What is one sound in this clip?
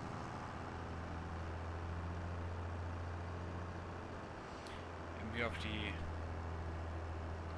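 A tractor engine hums steadily at low pitch.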